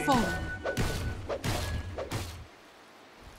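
Magic spells crackle and burst with sharp impacts during a fight.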